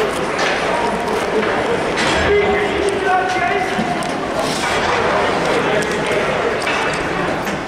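Hockey sticks clack against a puck on ice.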